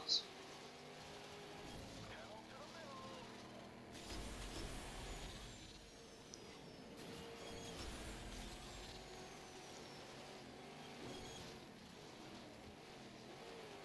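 A racing car engine whines steadily at high speed.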